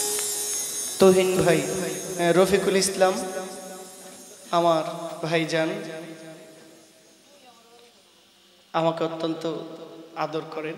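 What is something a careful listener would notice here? A young man sings loudly into a microphone through loudspeakers, in bursts with echoing pauses.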